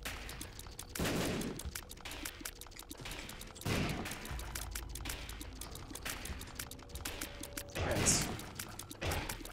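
Monster roars and squelching splatters burst out in a video game.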